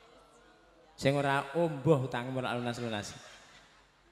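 An elderly man speaks animatedly into a microphone through loudspeakers.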